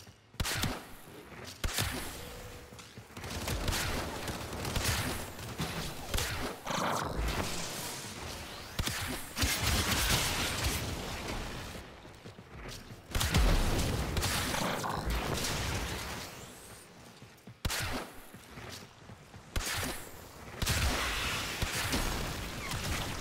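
Gunfire and energy blasts crack repeatedly.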